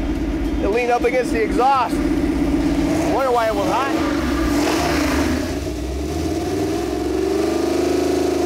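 An engine runs with a loud steady drone, then revs higher.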